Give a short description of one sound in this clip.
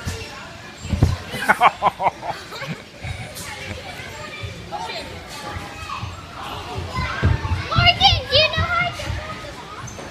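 Children shout and squeal with excitement in a large echoing hall.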